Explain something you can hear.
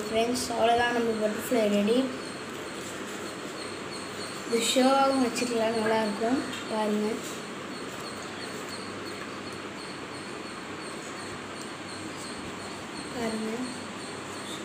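A boy talks calmly close by.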